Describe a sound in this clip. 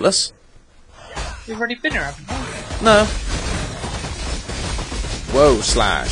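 Magic blasts and clashing combat effects crackle loudly.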